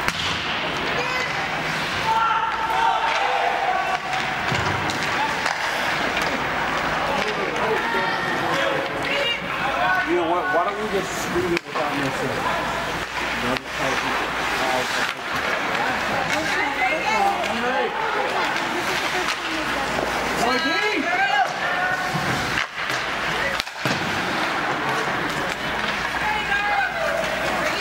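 A crowd of spectators chatters and calls out in an echoing rink.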